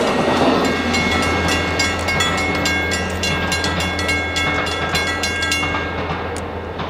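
Train wheels squeal on a curve of track.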